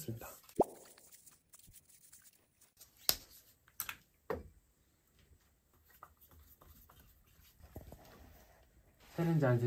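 Plastic parts click and knock as a man handles them.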